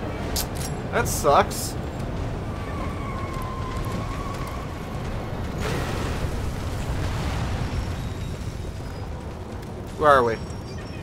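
A deep rumble of crashing debris roars and then fades.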